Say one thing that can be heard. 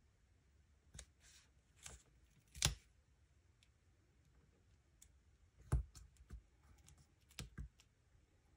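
Paper taps softly against a hard surface.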